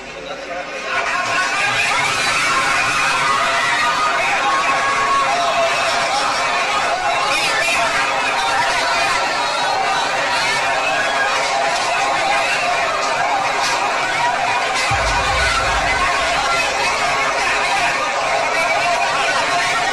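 A crowd of men and women shouts in alarm nearby.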